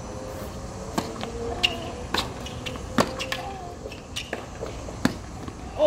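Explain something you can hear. A tennis ball is struck with a racket in sharp pops, back and forth.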